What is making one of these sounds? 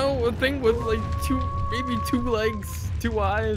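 A wolf howls.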